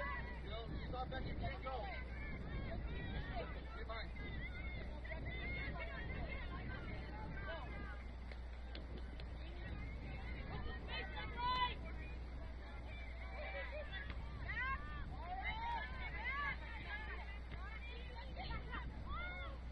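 Young women shout calls to each other across an open field.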